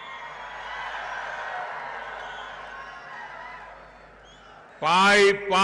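A large crowd cheers in the distance.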